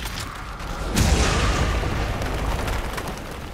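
Crystal shatters with a loud crash.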